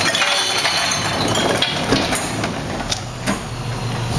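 A plastic bin clatters as a worker empties it into a garbage truck.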